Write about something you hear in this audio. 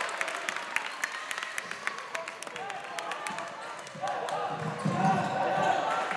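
A basketball bounces on a hard floor with dull thuds.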